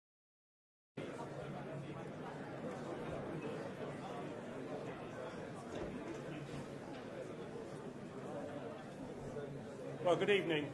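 An audience murmurs in a large hall.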